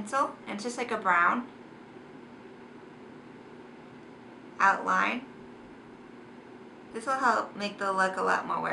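A young woman speaks calmly close to a microphone, in short bursts with pauses.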